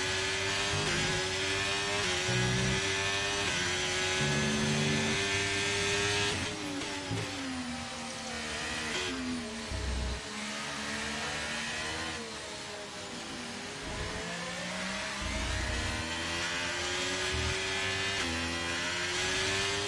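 A racing car engine screams at high revs, rising and dropping in pitch as it shifts gears.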